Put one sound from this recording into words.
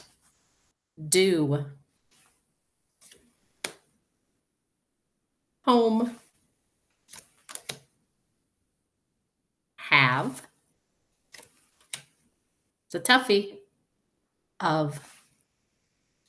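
A middle-aged woman reads out single words slowly and clearly, heard through an online call.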